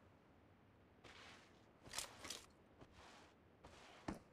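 Clothing rustles and shuffles as a soldier crawls across a floor.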